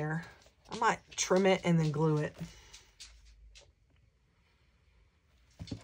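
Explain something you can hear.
Paper rustles and taps as a card is handled.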